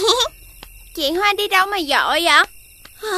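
A young boy speaks cheerfully with animation.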